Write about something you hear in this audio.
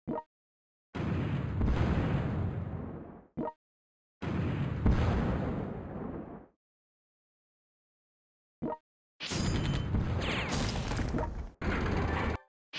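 Explosions boom and rumble in long bursts.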